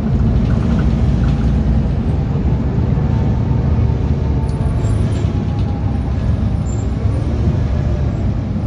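A bus rattles and creaks over the road.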